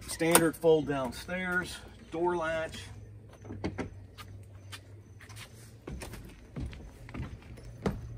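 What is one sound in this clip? A door latch clicks and rattles.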